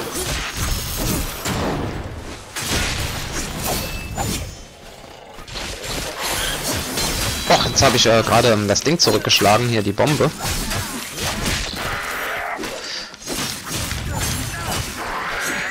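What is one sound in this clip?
Fiery explosions burst and crackle.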